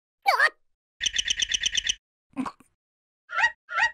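A second cartoon creature answers in short, high squeaky bursts.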